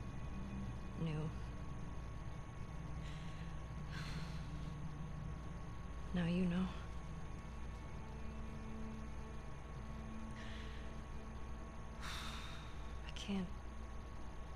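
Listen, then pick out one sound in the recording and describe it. A young woman speaks softly in short, broken phrases.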